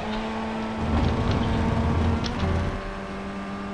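Tyres rumble over kerbs.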